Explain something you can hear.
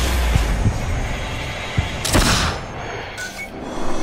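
A blade strikes a body in a quick fight.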